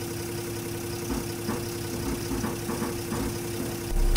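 Bus doors hiss open.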